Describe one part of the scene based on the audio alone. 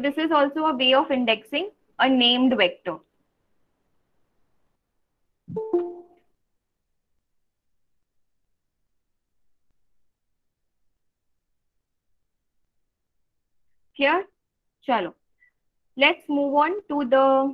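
A young woman speaks calmly through an online call, pausing often.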